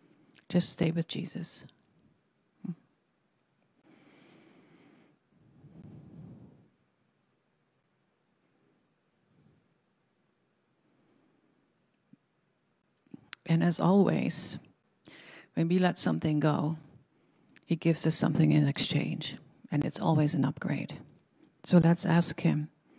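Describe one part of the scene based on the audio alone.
An older woman reads aloud calmly into a microphone.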